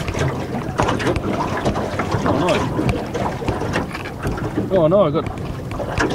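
A fishing reel clicks and whirs.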